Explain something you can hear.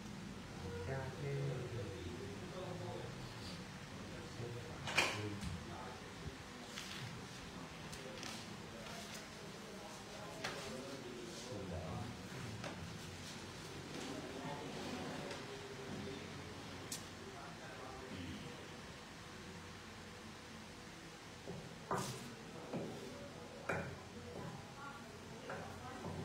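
Men talk quietly nearby in a room.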